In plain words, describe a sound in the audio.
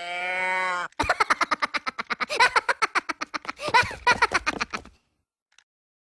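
A squeaky, high-pitched cartoon voice bursts into loud, giggling laughter close by.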